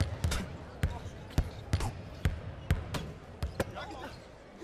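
A basketball bounces rhythmically on a hard court.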